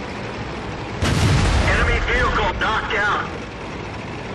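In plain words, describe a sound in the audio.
A loud explosion bursts and crackles with fire.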